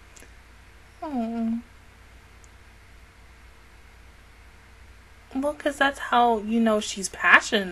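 A woman speaks closely into a microphone with animation.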